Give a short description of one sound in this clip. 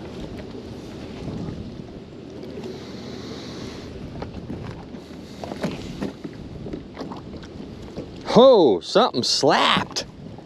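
A wet rope slides through gloved hands.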